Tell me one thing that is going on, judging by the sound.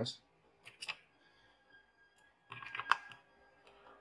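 A plug clicks into a power socket.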